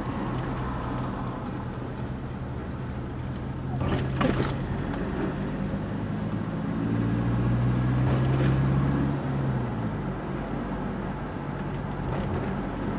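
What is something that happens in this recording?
Tyres roll on the road surface with a low rumble.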